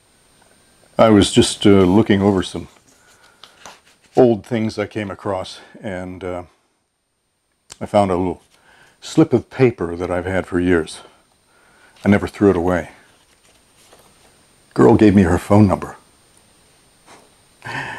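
A middle-aged man speaks calmly and close by, partly reading aloud.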